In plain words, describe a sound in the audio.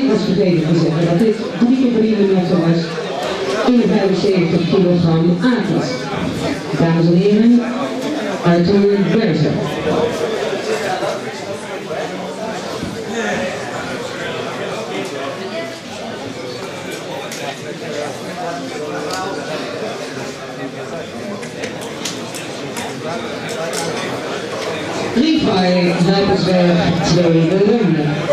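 A middle-aged man speaks firmly and quickly up close.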